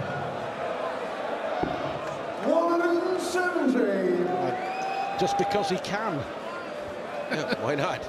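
A large crowd sings and chants loudly in a big hall.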